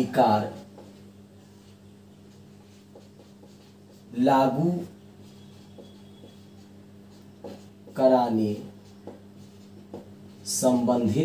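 A middle-aged man speaks in short bursts, with pauses between them.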